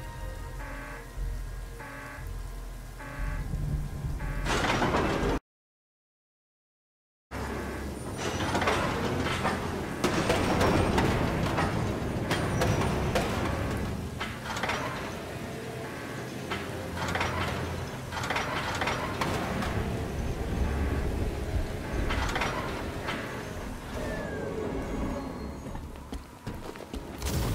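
Rain falls steadily.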